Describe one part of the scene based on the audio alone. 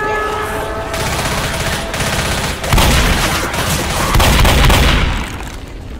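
A shotgun fires several loud blasts.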